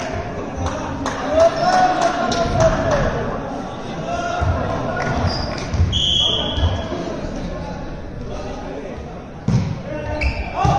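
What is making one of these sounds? Young men call out and talk across a large echoing hall.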